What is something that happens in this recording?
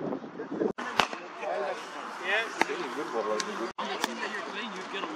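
A cricket bat sharply cracks against a ball.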